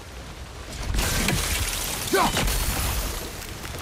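Steam bursts out with a loud rushing hiss.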